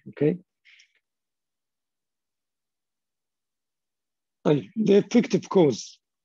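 An elderly man speaks calmly over a microphone, in short bursts with a long pause.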